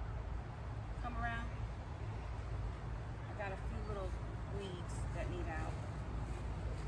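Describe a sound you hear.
A woman speaks calmly at a distance outdoors.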